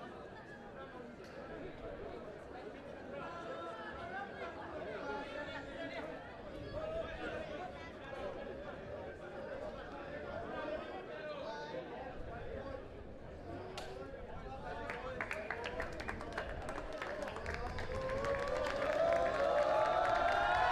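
A crowd of young men chatters and calls out outdoors.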